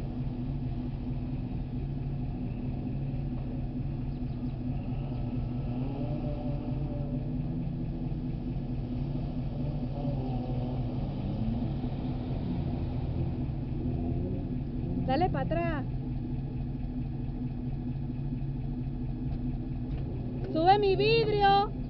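A car engine rumbles steadily as it drives through water.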